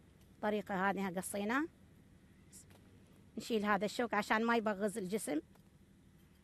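A woman speaks calmly and clearly, close by.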